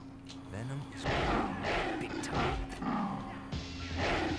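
Punches land with heavy thuds in a scuffle.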